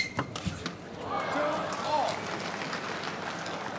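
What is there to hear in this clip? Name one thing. A crowd cheers and claps in a large hall.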